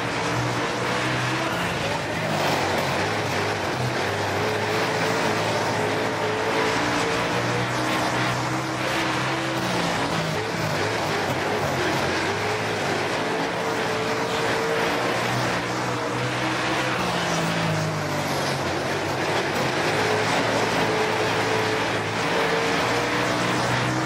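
A race car engine roars and revs up and down as it drives.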